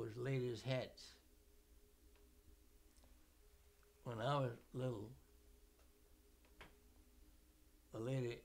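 An elderly man speaks slowly and calmly, close by, with long pauses.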